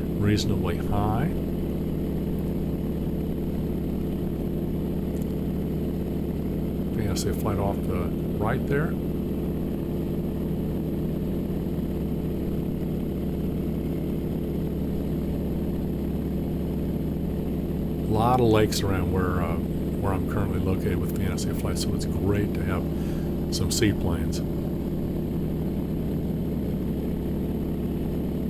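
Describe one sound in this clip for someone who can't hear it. An aircraft engine drones loudly and steadily.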